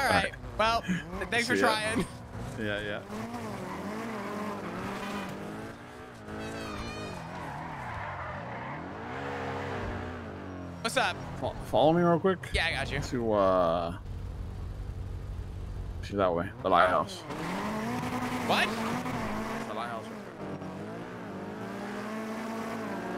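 A car engine revs and roars as a car speeds along a road.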